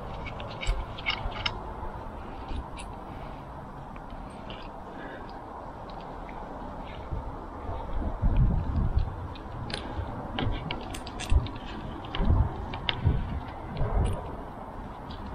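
Small metal parts click and tap.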